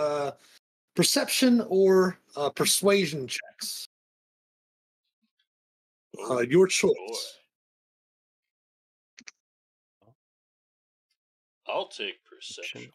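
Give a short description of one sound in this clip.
Men talk with animation over an online call.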